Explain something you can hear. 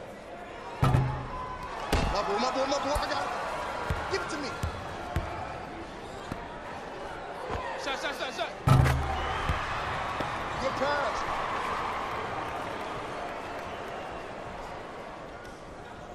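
A crowd cheers and murmurs in a large hall.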